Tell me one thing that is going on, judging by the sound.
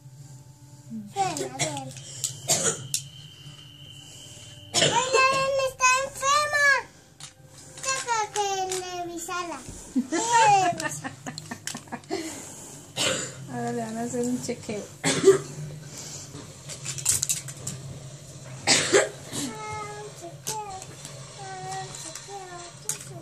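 A little girl talks and squeals playfully up close.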